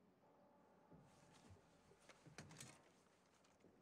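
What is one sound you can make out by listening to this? A rifle clatters as it is lifted from a wall rack.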